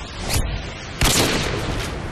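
A bolt-action sniper rifle fires a single loud shot.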